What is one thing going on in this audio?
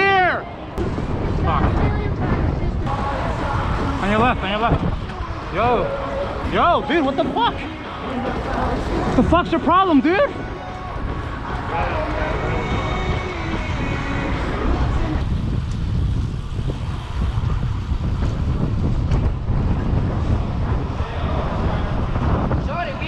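Wind rushes and rumbles past while riding outdoors.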